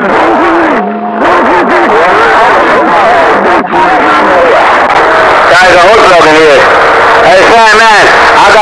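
A distorted, warbling voice comes through a radio speaker.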